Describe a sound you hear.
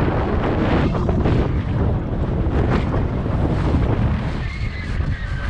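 Bike tyres roll and rumble over a track.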